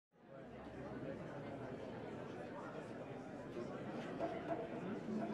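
A keyboard plays a melody.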